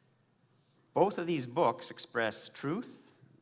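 An elderly man speaks calmly and clearly into a microphone.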